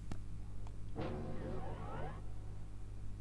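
A heavy door grinds open in a video game.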